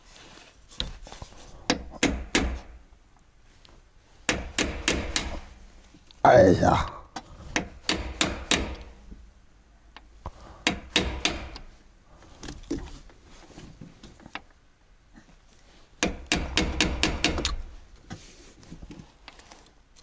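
Keys jingle and click against an ignition in bursts.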